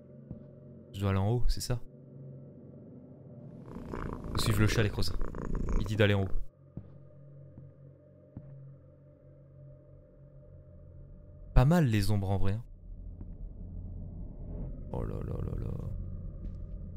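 A young man talks into a close microphone in short, animated bursts.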